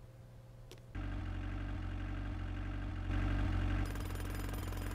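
A small car engine hums steadily.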